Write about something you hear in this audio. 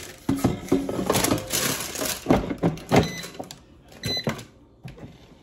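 An air fryer basket rattles and clicks into place.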